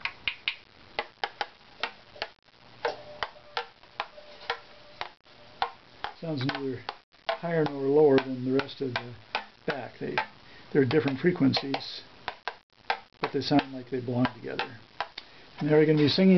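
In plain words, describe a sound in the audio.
A small tool taps and scrapes on the wooden body of a violin.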